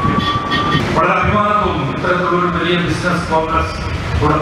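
A middle-aged man speaks into a microphone through a loudspeaker.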